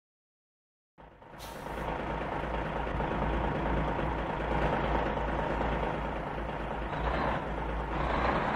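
A truck engine rumbles steadily in an echoing hall.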